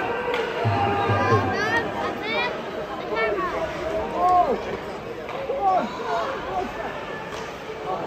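A crowd murmurs throughout.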